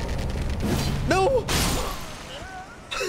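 A weapon clashes with a loud magical burst.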